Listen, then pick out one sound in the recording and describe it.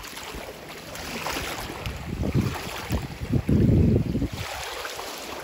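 A hand splashes in shallow water.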